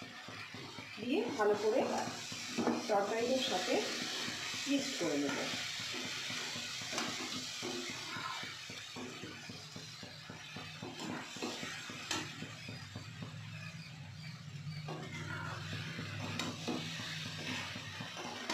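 A metal spatula scrapes and clinks against a pan while stirring.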